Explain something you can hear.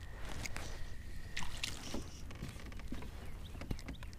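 A small fish splashes in the water.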